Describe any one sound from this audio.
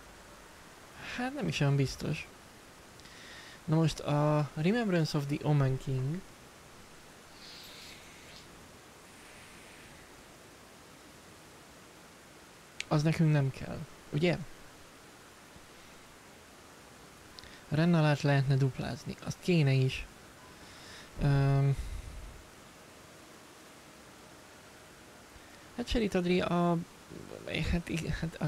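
A young man talks with animation into a close microphone, in short bursts with pauses.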